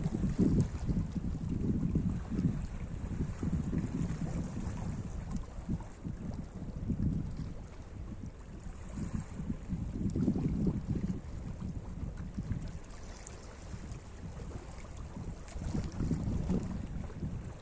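Wind blows across the microphone in gusts outdoors.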